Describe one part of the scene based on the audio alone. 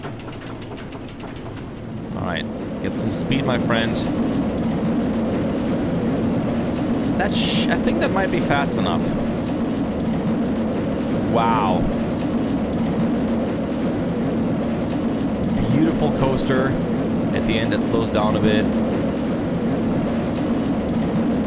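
A roller coaster rumbles steadily along its track.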